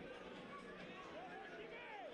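A stadium crowd chants and cheers in the distance.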